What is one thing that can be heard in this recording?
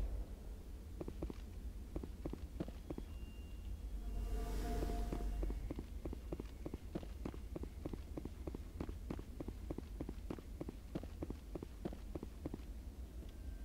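Heavy boots thud in a quick, steady rhythm on a metal floor.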